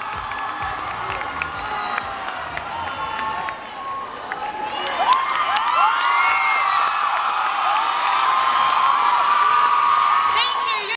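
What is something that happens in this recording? A large crowd of young people cheers and screams loudly outdoors.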